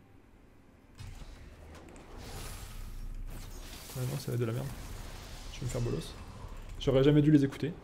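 Magic blasts whoosh and crackle in a fight.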